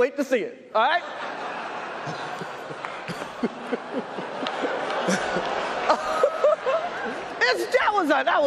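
An audience laughs and murmurs.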